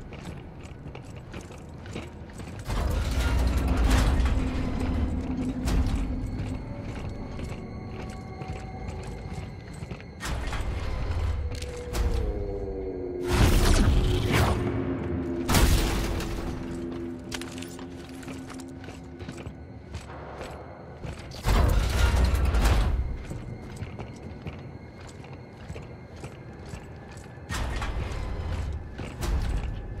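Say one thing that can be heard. Heavy footsteps clank on metal floors.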